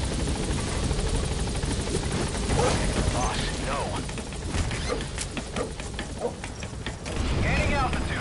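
A helicopter's rotors thump and drone close by.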